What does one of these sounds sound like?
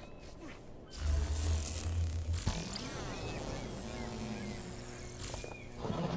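A crackling burst of energy whooshes as a figure leaps.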